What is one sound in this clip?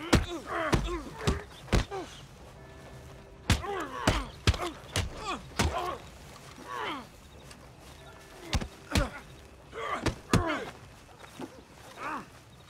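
A man grunts and groans with effort and pain.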